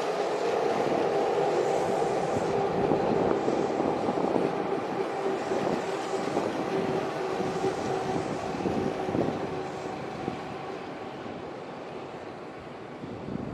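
A train rumbles past close by and slowly fades away.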